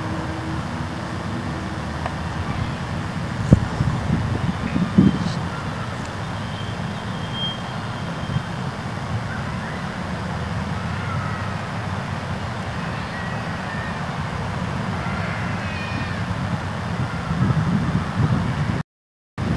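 Wind blows across the microphone outdoors with a low, steady rumble.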